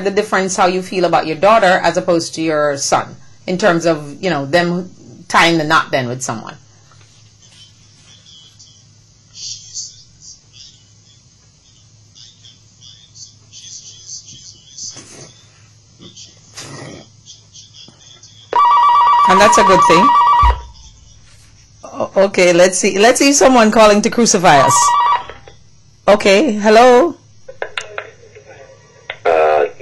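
A woman speaks calmly into a close microphone.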